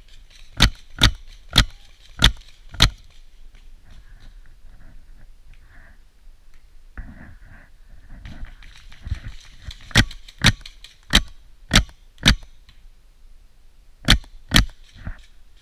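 An airsoft rifle fires sharp single shots in quick bursts.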